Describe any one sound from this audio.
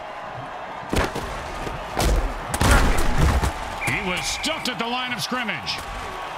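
Heavy bodies collide with loud thuds.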